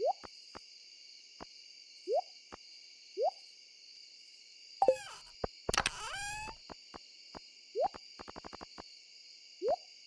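Short rising blips sound as menu items are picked.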